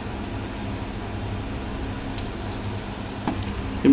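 Liquid pours into a metal pot.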